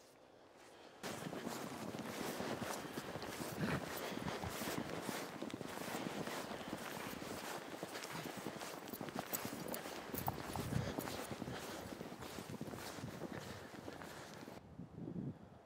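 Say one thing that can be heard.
Strong wind gusts roar outdoors.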